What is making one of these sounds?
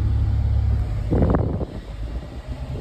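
Water splashes under the car's wheels.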